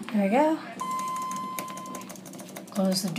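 An elevator button beeps.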